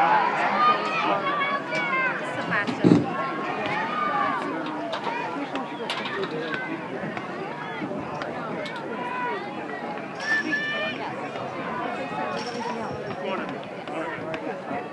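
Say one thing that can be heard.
A crowd of spectators chatters all around outdoors.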